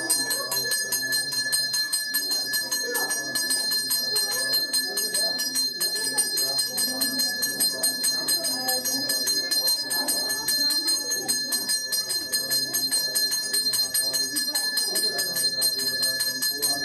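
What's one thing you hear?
A hand bell rings steadily and quickly, close by.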